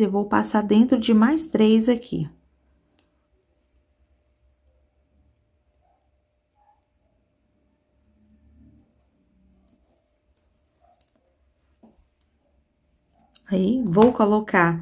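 Small beads click softly against each other as a needle and thread are pulled through.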